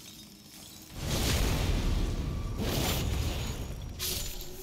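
A magic blast bursts with a loud rushing roar.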